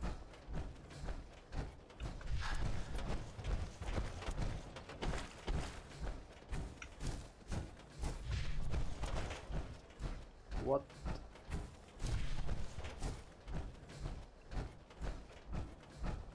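Heavy metal footsteps thud steadily.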